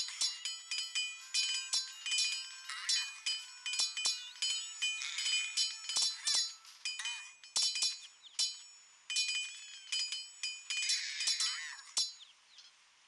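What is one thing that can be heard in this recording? Swords clash and clang rapidly in a fierce melee.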